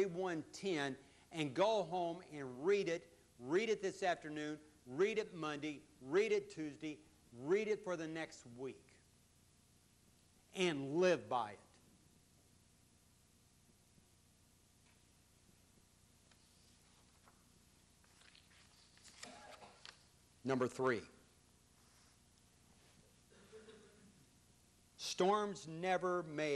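An elderly man preaches with animation through a microphone, pausing often.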